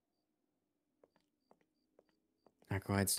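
Boots tap on a paved floor.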